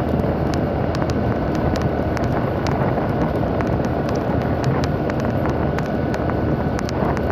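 Wind rushes and buffets against the rider.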